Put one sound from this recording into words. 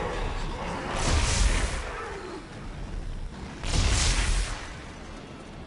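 Energy weapons fire in loud, rushing bursts.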